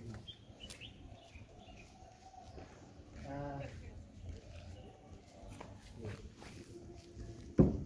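Footsteps crunch on a dirt path and fade as a man walks away.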